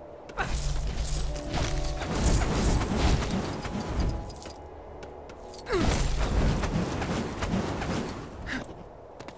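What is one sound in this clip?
Game coins jingle as they are collected.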